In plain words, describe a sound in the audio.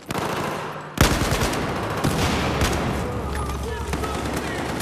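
Rapid gunfire rattles in loud bursts, with heavy booms and echoes.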